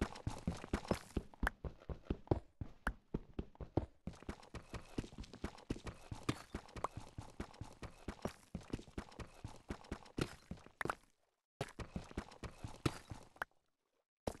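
A pickaxe chips rapidly at stone.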